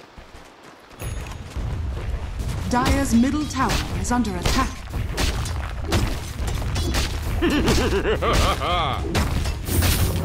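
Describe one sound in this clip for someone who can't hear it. Fantasy battle sounds of spells and blows crash and boom.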